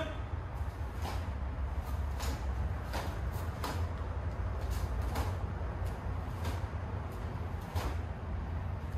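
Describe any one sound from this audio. A martial arts uniform snaps crisply with quick punches and kicks.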